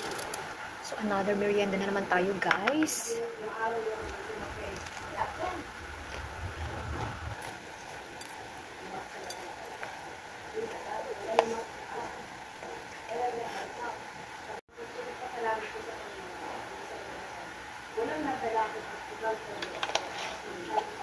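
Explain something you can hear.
A middle-aged woman speaks calmly, close by.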